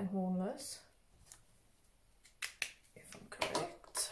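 A sheet of paper rustles and slides across a table.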